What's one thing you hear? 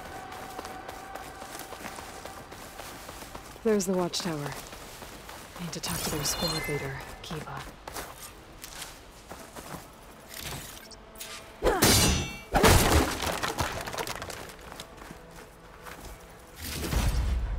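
Footsteps crunch over grass and rock.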